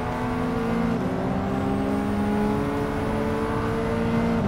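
A race car engine drops in pitch briefly as it shifts gear, then climbs again.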